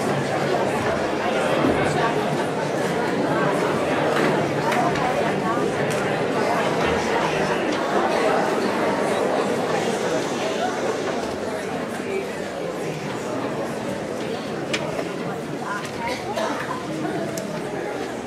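An audience claps and applauds in a large echoing hall.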